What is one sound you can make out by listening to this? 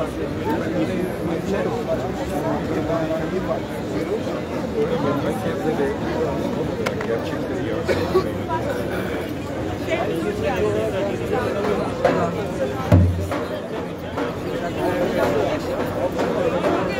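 A crowd of men and women talks and murmurs all around outdoors.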